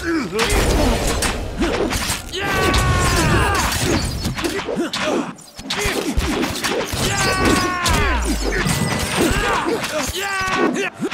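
Swords clash and clang in a battle.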